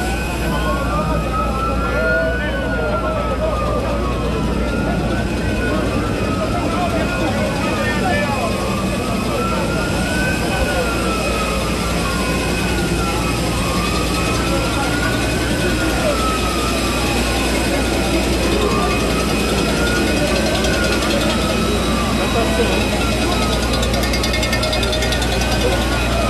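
A large crowd chatters and calls out outdoors close by.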